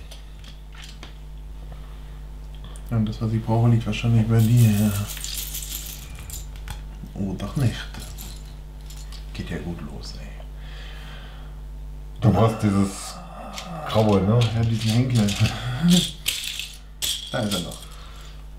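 Small plastic bricks click and rattle as hands sort through them.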